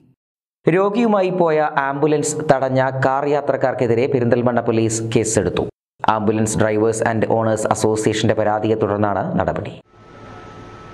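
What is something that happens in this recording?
A man speaks steadily and clearly into a microphone.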